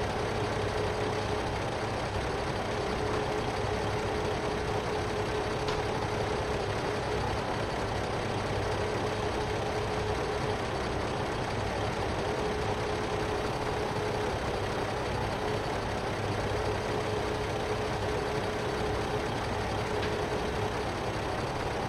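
A hydraulic crane arm whines as it moves.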